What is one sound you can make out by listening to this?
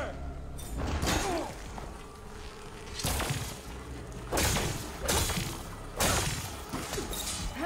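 Sharp blasts and impacts crack repeatedly.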